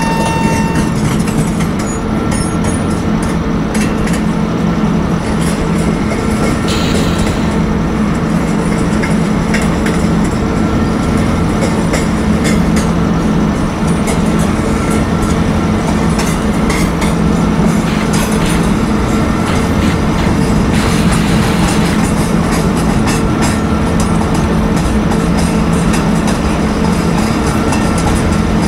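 An electric train hums steadily as it runs along the track.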